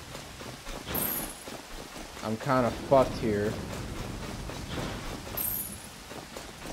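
A sword slashes through the air with a sharp swish.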